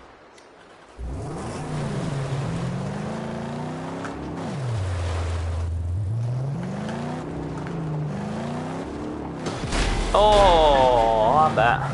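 A car engine revs hard and shifts through its gears.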